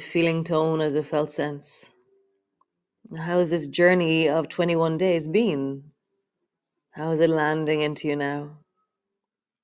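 A woman speaks calmly and softly, close to a microphone.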